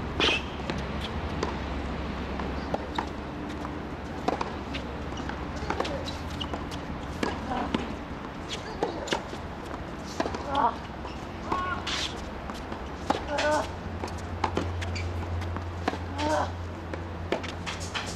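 Tennis balls are struck with a sharp pop, back and forth.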